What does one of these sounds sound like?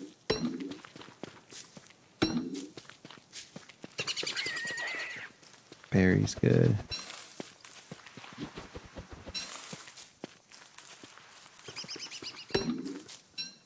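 Quick footsteps patter over dry ground.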